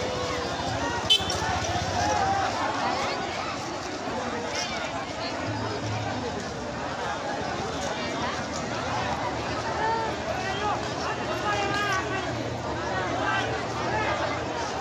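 A large crowd of men chants and shouts together loudly outdoors.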